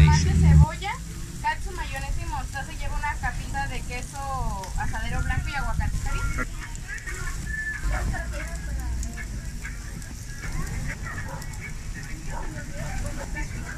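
Meat patties sizzle on a hot griddle.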